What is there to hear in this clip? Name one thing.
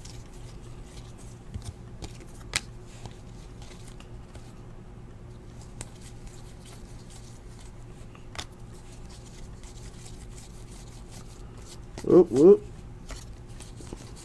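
Trading cards rustle and click softly as a hand flips through them.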